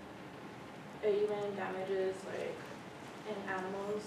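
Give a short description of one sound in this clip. A young woman presents at a lectern, heard from across a room.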